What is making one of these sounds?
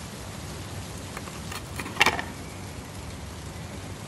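A plastic lid clatters against a container.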